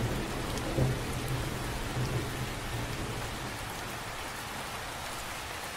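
Rain patters steadily on the surface of a lake.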